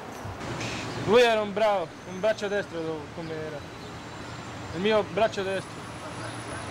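A young man speaks calmly and close by, outdoors.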